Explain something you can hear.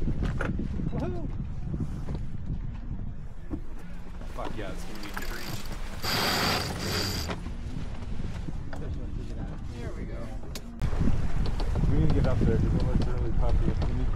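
Men talk casually nearby.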